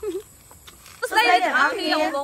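Young women cheer and shout loudly together.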